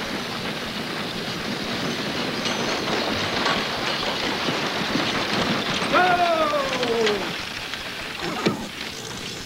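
Horses' hooves clop on a dirt street.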